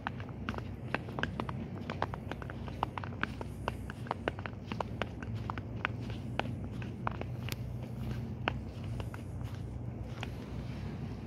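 Footsteps crunch on fresh snow.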